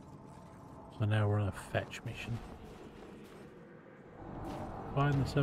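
A man talks into a microphone with animation, heard close.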